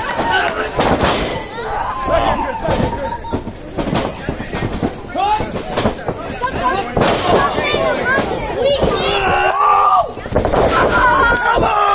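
Bodies thud onto a wrestling ring mat.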